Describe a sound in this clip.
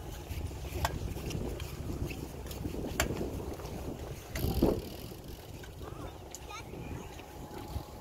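Bicycle tyres roll and crunch over a dirt track.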